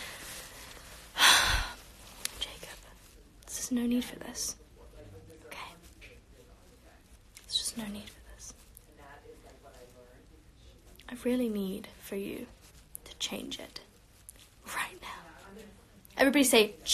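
A girl talks casually and close to the microphone, in short bursts.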